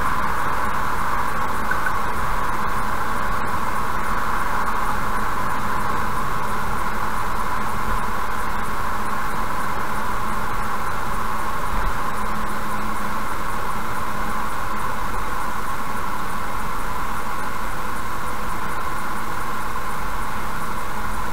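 A car drives steadily along a highway with a constant rumble of road noise.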